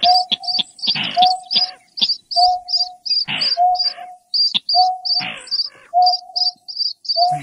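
A bird gives short, low whistling hoots over and over.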